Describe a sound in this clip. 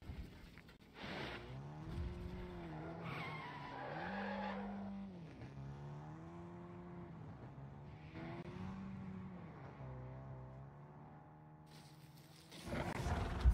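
An off-road buggy's engine hums and revs up and down.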